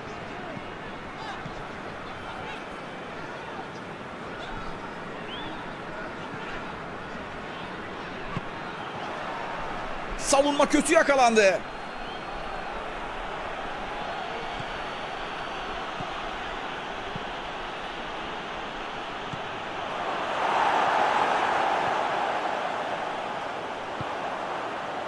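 A large stadium crowd murmurs steadily and swells into a roar.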